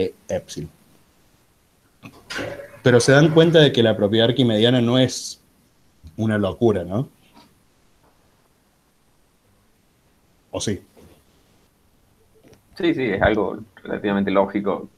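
A young man speaks calmly over an online call.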